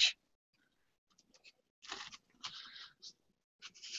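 A brush swishes softly over paper.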